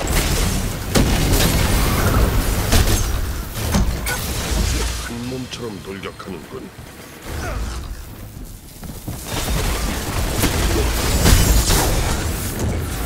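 Energy blasts crackle and boom in a video game.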